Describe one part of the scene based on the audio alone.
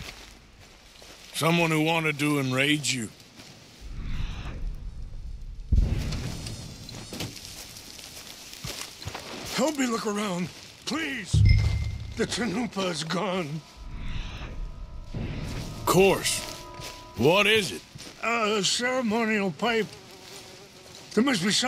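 Footsteps crunch through grass and over stones.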